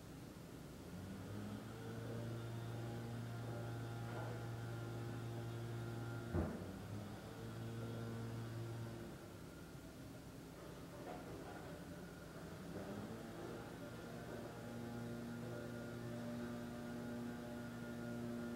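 A man hums a low, steady drone close by.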